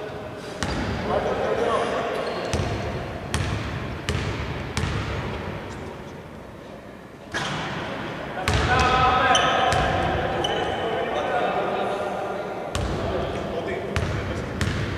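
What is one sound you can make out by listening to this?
Men talk and call out across a large echoing hall.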